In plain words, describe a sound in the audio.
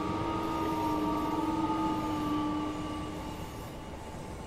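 A train horn sounds loudly.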